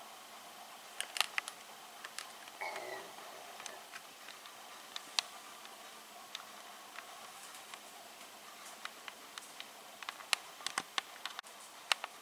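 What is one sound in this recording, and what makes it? Strings of a beaded curtain click lightly against each other.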